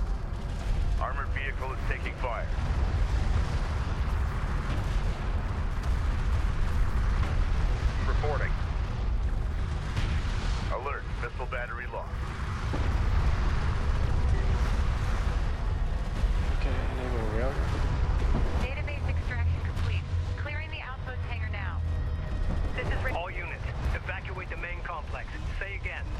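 Weapons fire and explosions rumble in a battle.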